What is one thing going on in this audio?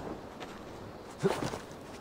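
Leaves rustle as a person pushes through bushes.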